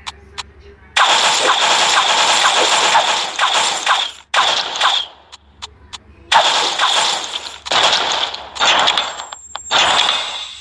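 Game battle sounds blast loudly in bursts.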